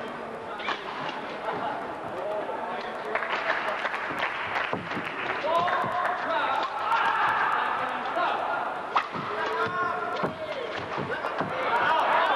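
A shuttlecock is struck sharply by rackets in a rally.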